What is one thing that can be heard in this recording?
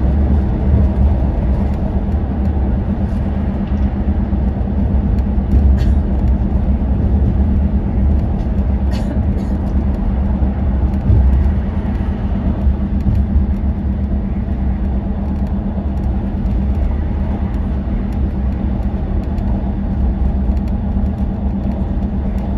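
A vehicle's engine drones steadily with a deep hum.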